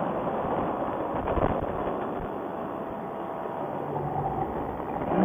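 Wind rushes loudly past a paraglider in flight.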